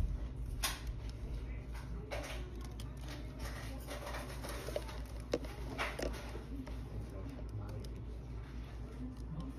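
Chopsticks scrape and tap against a plastic cup.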